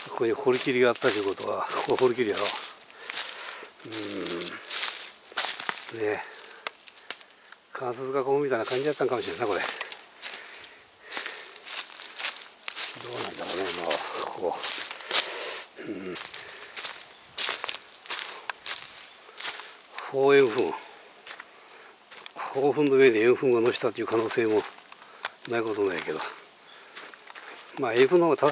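Footsteps crunch through dry leaves on the ground.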